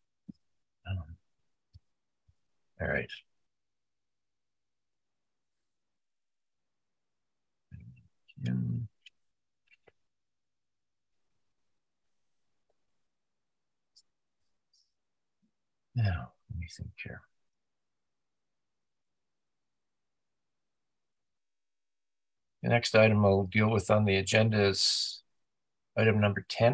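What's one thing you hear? Men speak briefly over an online call, with pauses between remarks.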